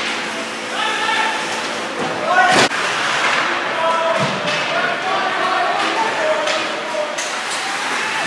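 Young men shout from a distance in an echoing rink.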